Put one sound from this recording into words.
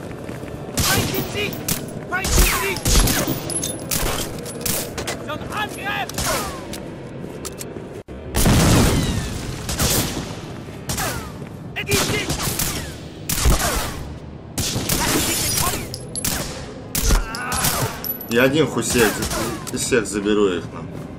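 A pistol fires repeated sharp shots.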